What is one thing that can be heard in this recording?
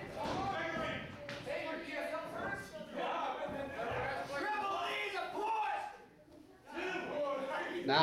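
A man announces loudly over a loudspeaker in an echoing hall.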